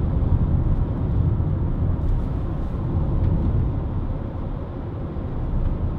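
A car engine hums steadily from inside the cabin while driving.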